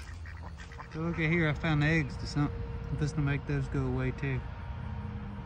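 Ducks quack nearby outdoors.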